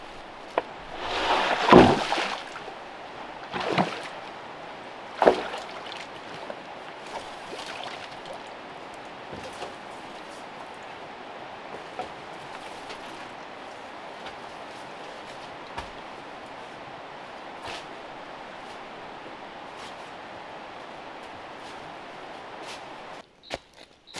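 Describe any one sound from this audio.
Leaves rustle and branches swish as a bamboo pole is dragged through brush.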